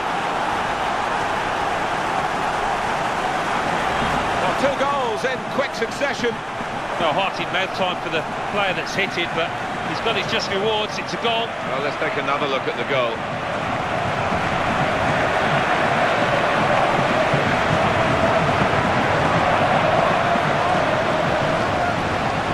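A large crowd roars and chants steadily in a stadium, swelling louder toward the end.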